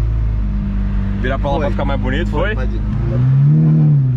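A powerful car engine idles with a deep rumble.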